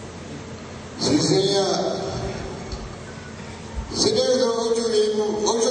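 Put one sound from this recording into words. An elderly man speaks calmly through a microphone and loudspeaker.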